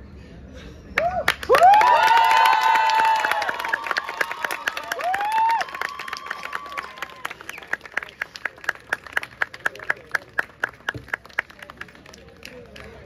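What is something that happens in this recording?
An audience claps along in a steady rhythm.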